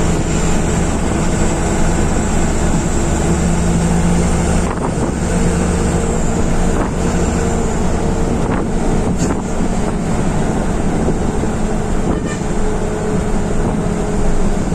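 A bus engine hums and rumbles steadily from inside the cab.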